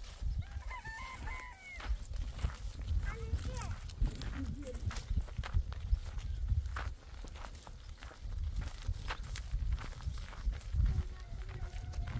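A young child calls out in a high voice.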